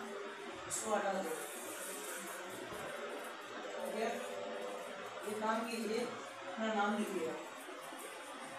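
A woman speaks calmly to a small group.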